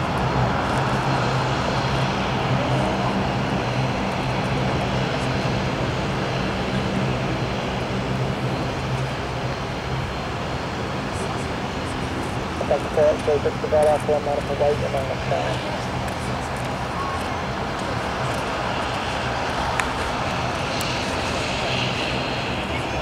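A propeller plane's engines drone loudly nearby as it taxis.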